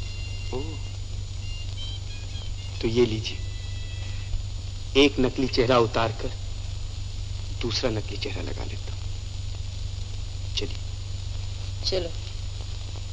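A young man speaks softly and playfully, close by.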